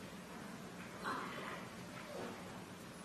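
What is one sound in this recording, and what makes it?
A speaker talks faintly through a microphone in a large hall.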